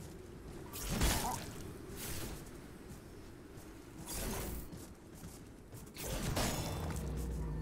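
A heavy weapon swings through the air with a whoosh.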